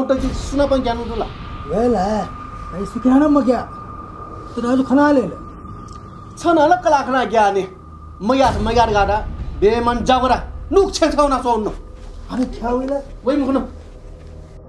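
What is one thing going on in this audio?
An elderly man speaks with animation close by.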